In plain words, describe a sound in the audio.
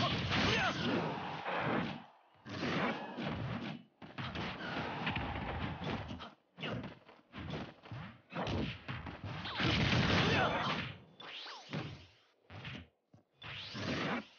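Fighters trade rapid punches, whooshes and blasts.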